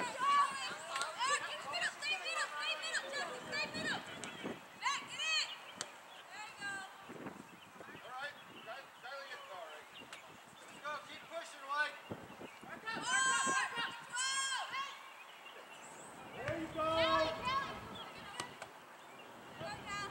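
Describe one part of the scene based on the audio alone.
Young women shout and call out across an open field outdoors.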